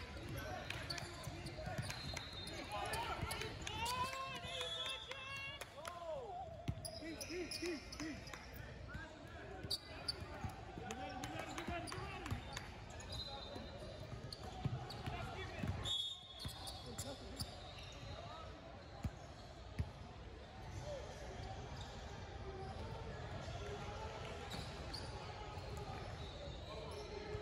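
Young players and spectators shout and chatter in the echoing hall.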